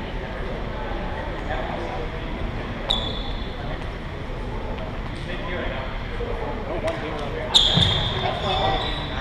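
A racket smacks a shuttlecock.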